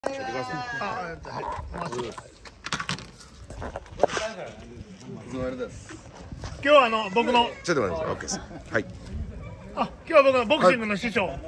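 A man speaks with animation close by, outdoors.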